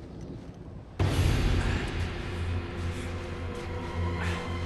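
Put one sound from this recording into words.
Strong wind howls and roars.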